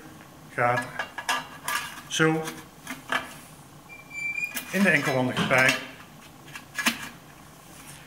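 Metal pipe parts scrape and clink as they are fitted together.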